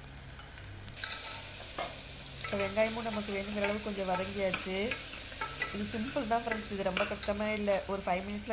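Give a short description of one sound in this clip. Food sizzles loudly in a hot pot.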